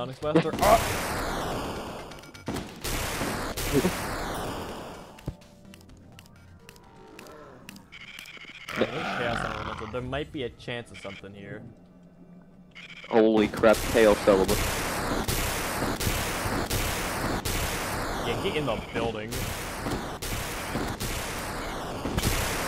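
A game weapon blasts in rapid bursts with rushing whooshes.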